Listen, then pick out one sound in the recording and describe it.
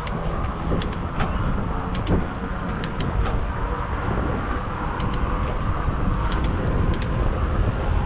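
A bicycle rattles with small clicks over bumps.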